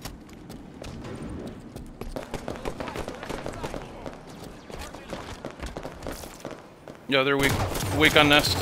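Game gunfire cracks in quick bursts.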